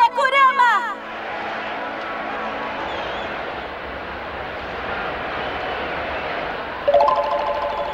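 A large crowd cheers in an echoing arena.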